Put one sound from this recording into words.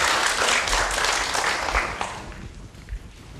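A crowd applauds in a large room.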